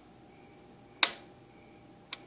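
A toggle switch clicks.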